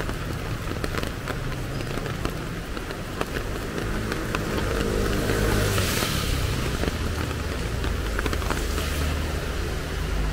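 Footsteps tap on stone paving, close by.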